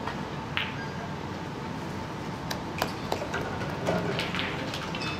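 Snooker balls clack together.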